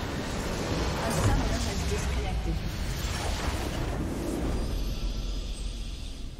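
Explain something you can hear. A large explosion booms in a video game.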